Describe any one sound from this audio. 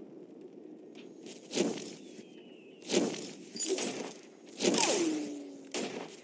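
A turret fires sharp shots.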